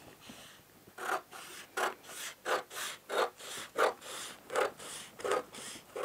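Scissors snip steadily through stiff paper.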